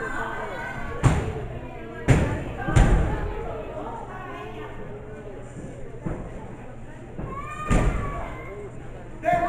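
A crowd of people chatter and call out in a room with some echo.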